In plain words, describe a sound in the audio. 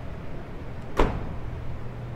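A car's boot lid slams shut with a single thud.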